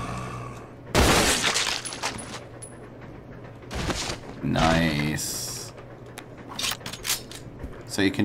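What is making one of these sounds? Gunshots ring out sharply several times.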